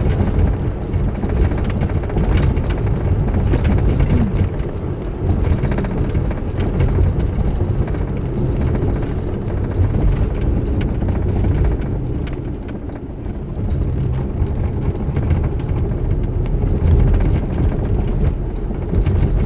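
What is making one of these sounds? A car engine rumbles steadily from inside while driving.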